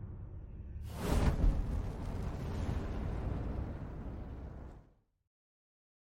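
A loud whoosh and crash sound as something shatters.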